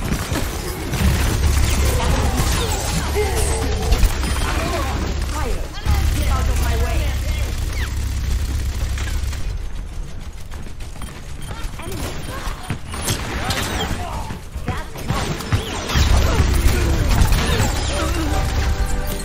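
Heavy gunfire rattles rapidly in bursts.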